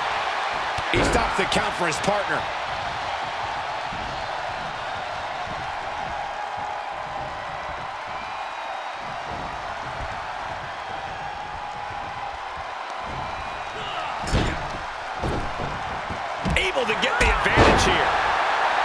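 Bodies slam onto a wrestling mat with heavy thuds.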